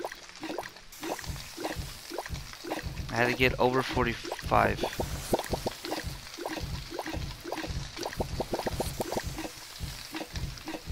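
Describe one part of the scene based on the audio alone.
Ingredients clatter rhythmically as they are tossed in a pan.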